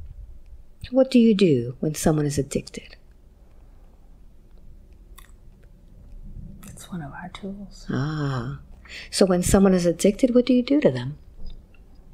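A woman speaks softly and slowly into a close microphone.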